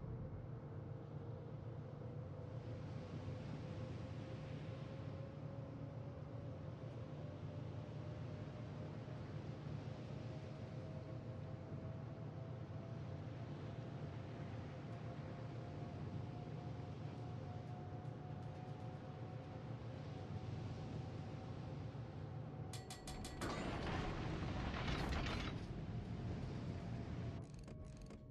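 Water rushes past a moving warship's hull.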